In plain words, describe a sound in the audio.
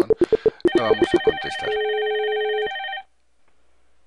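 A computer phone rings with rapid electronic beeping tones.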